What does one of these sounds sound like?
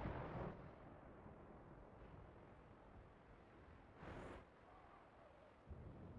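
Lightning crackles with a sharp electric zap.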